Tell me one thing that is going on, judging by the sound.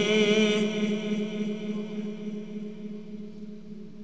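An elderly man chants a long held note through a microphone, and the note echoes and slowly fades.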